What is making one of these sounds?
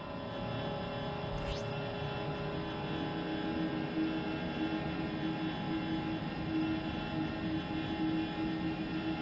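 A spaceship engine hums steadily.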